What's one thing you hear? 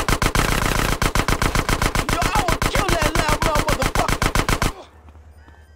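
A machine gun fires rapid bursts of shots.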